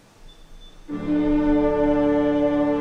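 An orchestra begins to play loudly in a large hall.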